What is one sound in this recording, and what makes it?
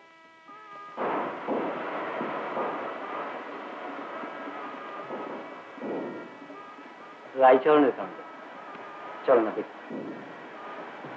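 A man speaks, close by.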